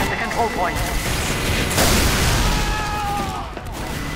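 A rocket launcher fires with a loud whoosh.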